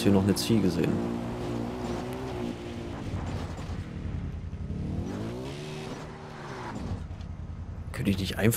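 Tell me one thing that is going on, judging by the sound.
A quad bike engine revs and idles, rising and falling in pitch.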